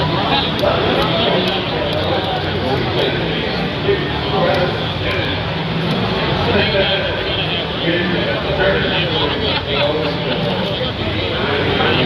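A crowd chatters loudly all around in a large, busy hall.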